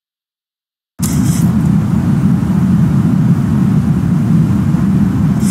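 Aircraft engines drone with a steady low rumble.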